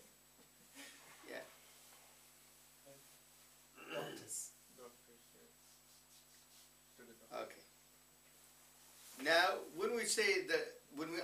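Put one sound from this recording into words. An elderly man speaks calmly, pausing often.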